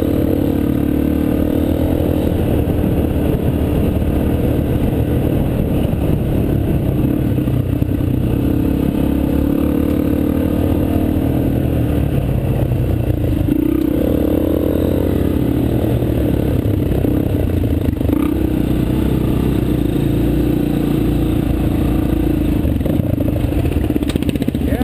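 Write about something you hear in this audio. A dirt bike engine roars steadily up close, rising and falling in pitch as the rider shifts.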